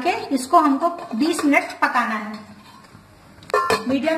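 A metal lid clanks onto a pan.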